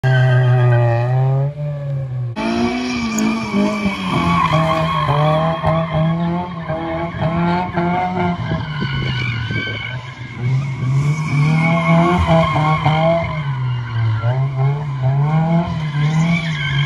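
A car engine revs hard and loudly, rising and falling in pitch.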